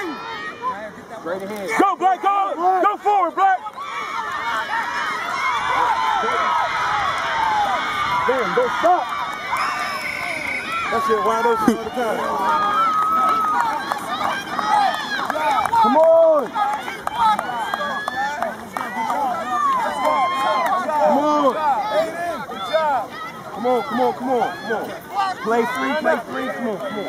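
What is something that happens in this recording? A crowd of adults cheers and shouts outdoors.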